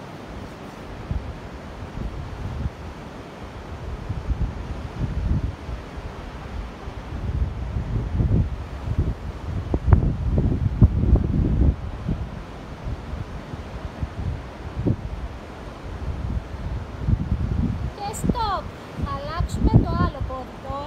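Sea waves wash against the shore nearby.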